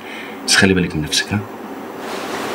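A man speaks softly and tenderly, close by.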